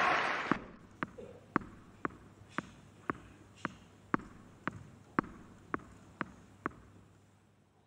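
A tennis ball bounces steadily on the court before a serve.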